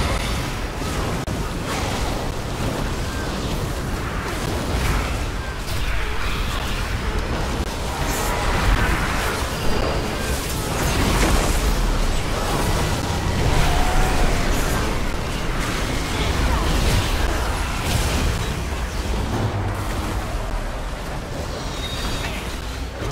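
Video game combat sounds of spells and weapon hits clash.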